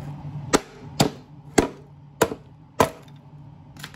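A head thumps hard against a wooden box, again and again.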